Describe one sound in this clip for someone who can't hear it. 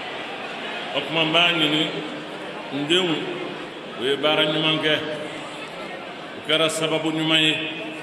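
An elderly man speaks slowly and firmly into microphones, heard through a loudspeaker.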